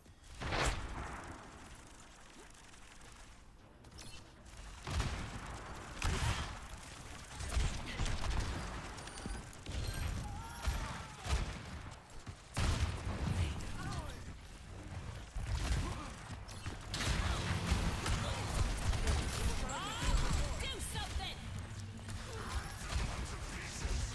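Game guns fire in quick bursts.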